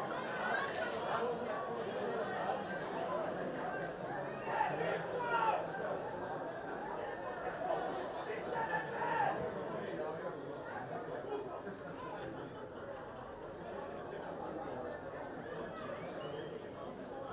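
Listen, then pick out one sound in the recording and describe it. A crowd murmurs and calls out in an open stadium.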